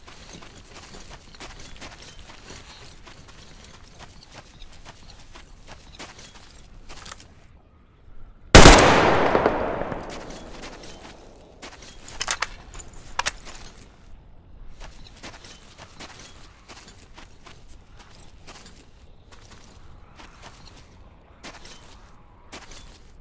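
Footsteps crunch over dry grass and sand.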